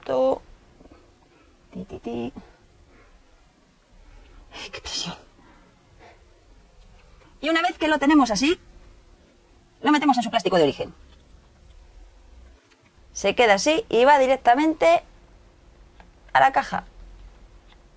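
A young woman speaks calmly and cheerfully into a close microphone.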